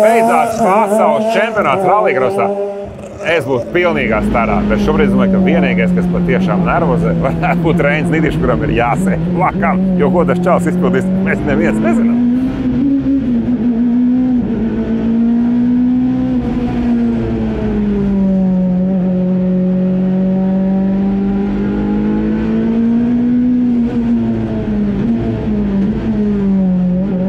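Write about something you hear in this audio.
A race car engine roars steadily, its pitch rising and falling as it revs.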